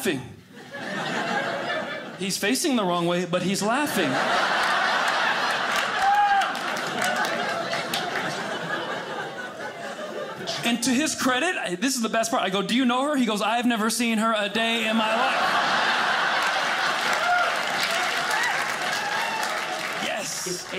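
An audience laughs loudly in a large room.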